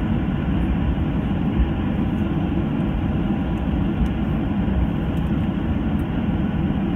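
Aircraft tyres rumble over the runway surface.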